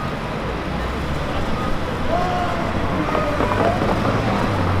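Cars drive past with a low rumble.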